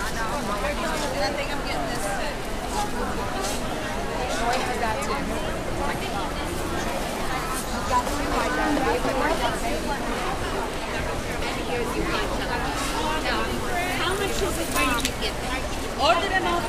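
A crowd of women chatter all around, close by.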